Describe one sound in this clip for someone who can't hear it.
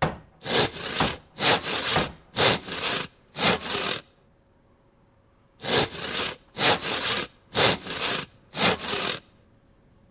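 An axe chops into wood in steady, repeated blows.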